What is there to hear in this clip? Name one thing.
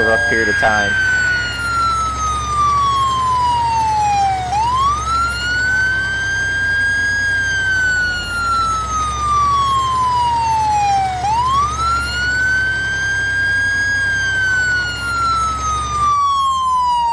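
A heavy truck engine rumbles steadily.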